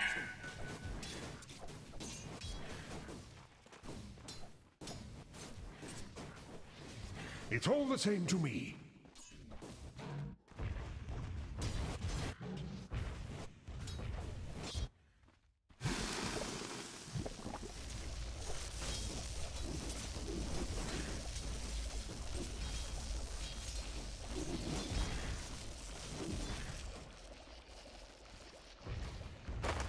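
Game spells and weapons clash and crackle in a fight.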